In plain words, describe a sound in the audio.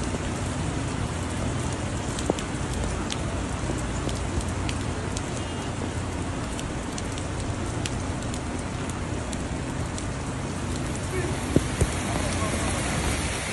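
Rain falls on wet pavement.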